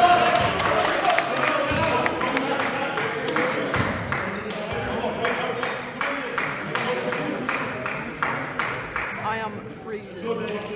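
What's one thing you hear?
A basketball bounces on a floor in a large echoing hall.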